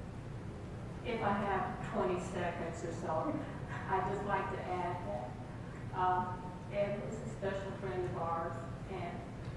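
A woman speaks through a microphone over loudspeakers in an echoing room.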